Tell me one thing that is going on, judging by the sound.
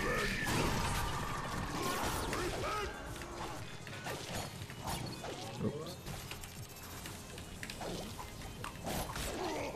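Video game explosions and impacts thump and crackle.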